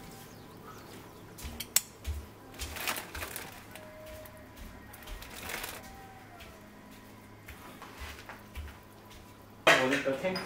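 Ingredients clunk softly into a metal pot.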